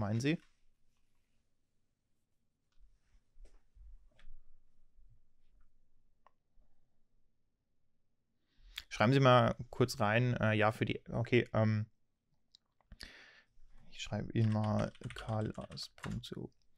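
A man speaks calmly and close into a microphone, with pauses.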